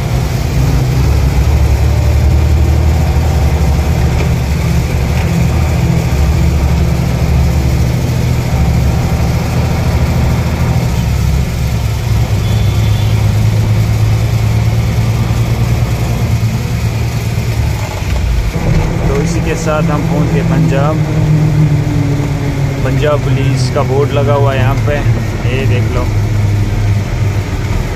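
A vehicle engine rumbles steadily while driving along a road.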